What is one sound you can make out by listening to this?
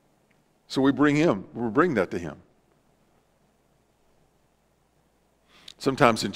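A middle-aged man preaches with animation through a microphone.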